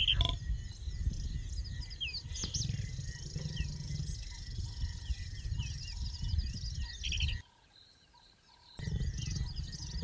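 A lioness rustles through dry grass as she walks.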